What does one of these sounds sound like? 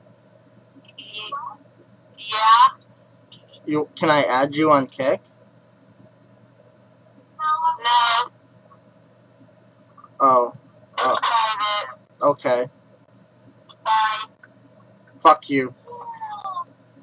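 A young man speaks in short bursts close to the microphone.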